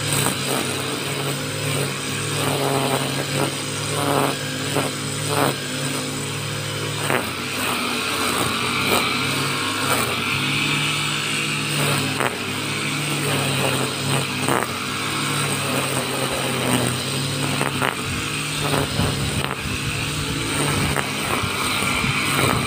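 String trimmer line whips and slices through grass.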